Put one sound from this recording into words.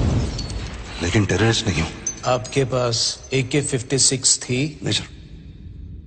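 A young man speaks with emotion, close up.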